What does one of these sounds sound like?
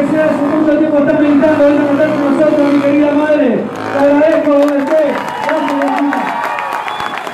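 A young man shouts through a loudspeaker with excitement.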